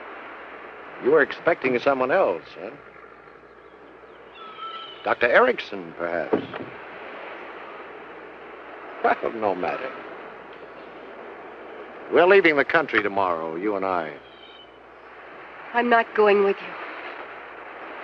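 A man speaks quietly outdoors.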